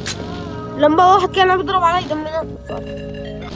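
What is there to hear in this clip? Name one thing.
A young man talks with animation into a microphone.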